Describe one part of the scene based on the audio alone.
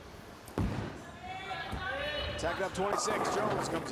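A bowling ball thuds onto a lane and rolls.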